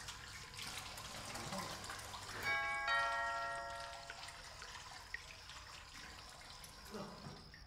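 Water splashes as a man rinses his face at a sink.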